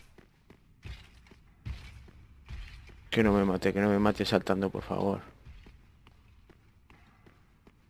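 Armoured footsteps thud slowly on stone.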